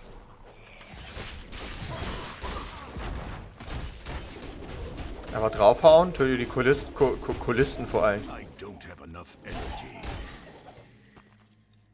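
Weapons clash and slash as a warrior fights enemies.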